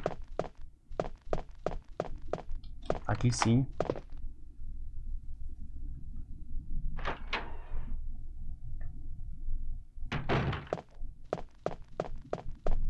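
Footsteps thud on a wooden floor at an even pace.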